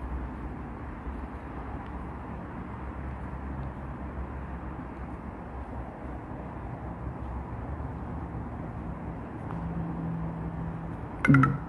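Fingertips tap softly on a phone's touchscreen.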